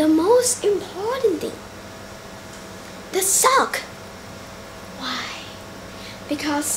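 A young girl speaks close by in short, lively phrases with pauses.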